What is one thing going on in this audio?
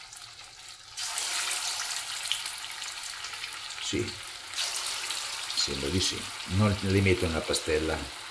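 Batter sizzles and crackles loudly in hot oil.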